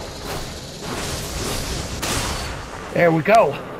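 A loud magical blast roars and crackles.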